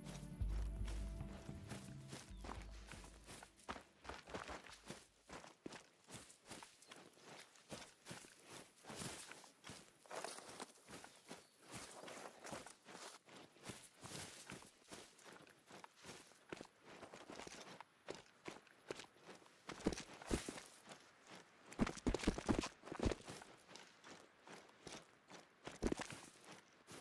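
Footsteps rustle steadily through tall grass and brush.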